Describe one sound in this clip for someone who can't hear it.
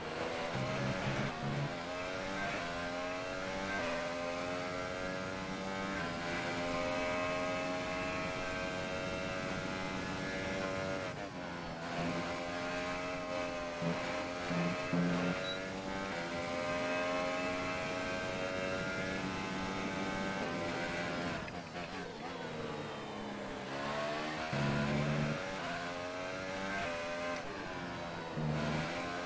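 A racing car engine whines at high revs, rising and falling as gears change.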